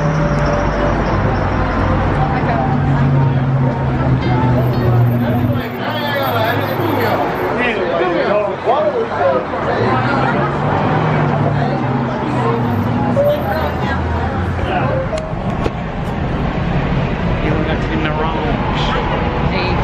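A busy crowd of people chatters outdoors.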